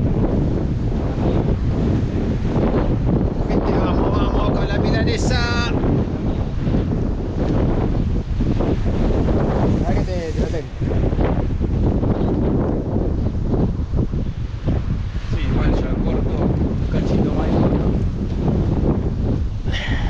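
Waves wash and break against rocks.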